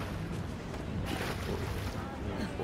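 Water splashes loudly as something lands in it.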